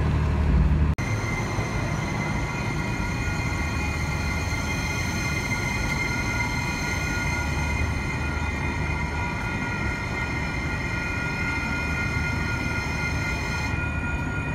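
An electric train motor whines steadily.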